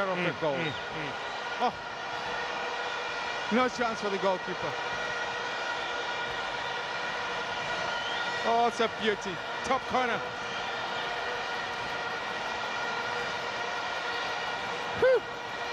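A large crowd cheers and murmurs steadily in a stadium.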